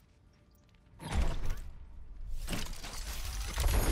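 A game loot box whooshes and rumbles as it lands and opens.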